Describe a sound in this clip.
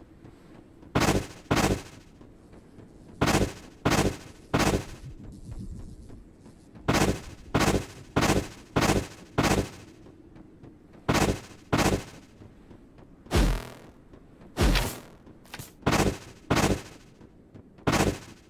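Short whooshing bursts sound again and again as a game character dashes.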